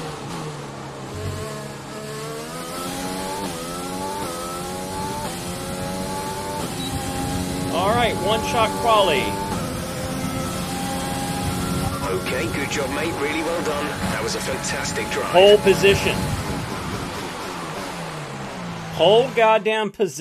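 A racing car engine revs high and shifts up through the gears.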